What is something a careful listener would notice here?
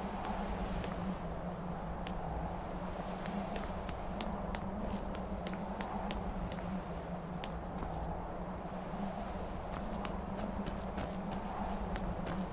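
Footsteps thud on stone steps at a steady walking pace.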